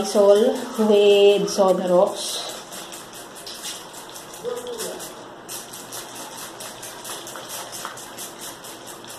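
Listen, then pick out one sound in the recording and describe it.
A spray bottle squirts liquid in quick, repeated hissing bursts.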